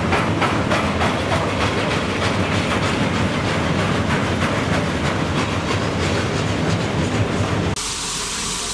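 A freight train rumbles and clatters past on the rails.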